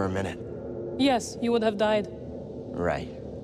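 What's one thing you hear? A woman answers in a low, calm voice.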